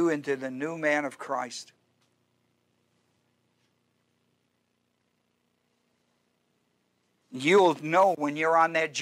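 An older man speaks calmly through a microphone, with pauses.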